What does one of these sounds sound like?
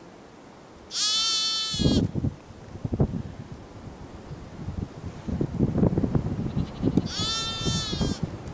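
A sheep bleats loudly nearby.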